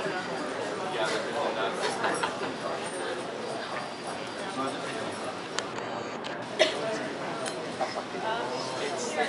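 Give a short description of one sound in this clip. A balsa-stick tower rattles on a shake table.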